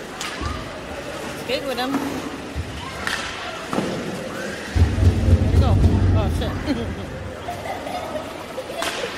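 Spectators talk and call out in an echoing arena.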